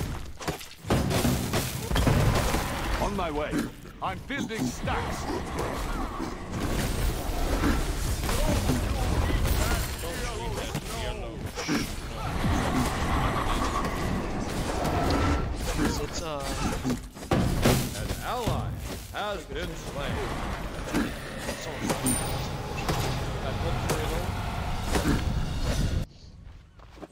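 Magic blasts and weapon hits crash and crackle in a fight.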